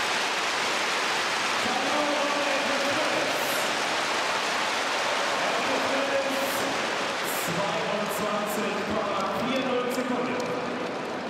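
A large crowd cheers loudly in an open stadium.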